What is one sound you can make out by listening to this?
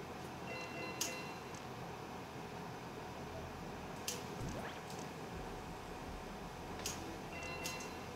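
Short, sharp electronic game effects chirp now and then.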